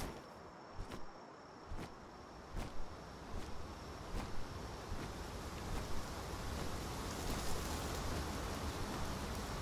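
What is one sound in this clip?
Large wings flap in steady, heavy beats.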